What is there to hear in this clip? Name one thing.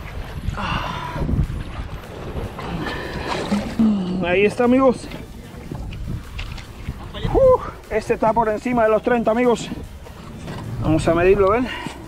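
Water laps gently against rocks nearby.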